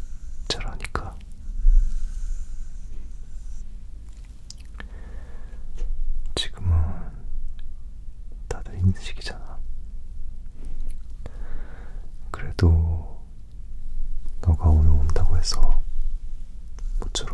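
Fingers tap and rustle close to the microphone.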